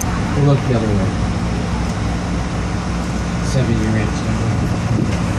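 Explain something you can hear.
A man speaks through a loudspeaker.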